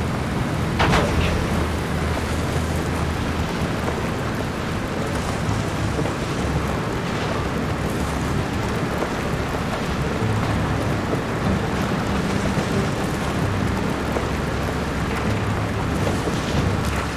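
A vehicle engine rumbles steadily as it drives over a bumpy dirt track.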